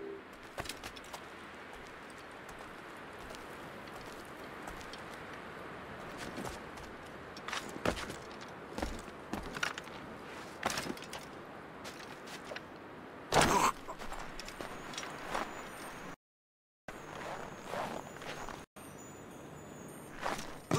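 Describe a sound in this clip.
Wind blows steadily.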